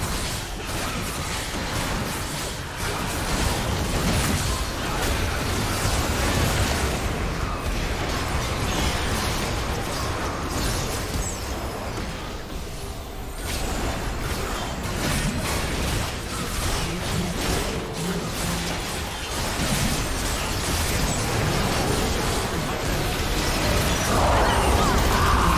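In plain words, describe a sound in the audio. Game battle effects, spell blasts and hits, crackle and boom throughout.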